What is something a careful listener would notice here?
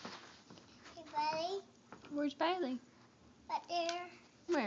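A little girl talks in a high voice close by.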